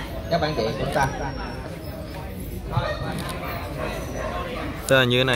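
Men talk in a crowd nearby, outdoors.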